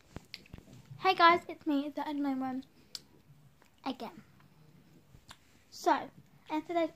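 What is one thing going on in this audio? A young girl talks with animation close to a phone's microphone.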